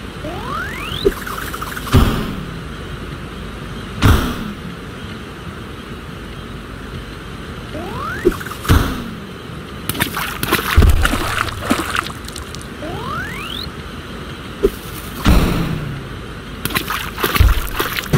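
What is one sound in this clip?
Bright popping thuds sound again and again.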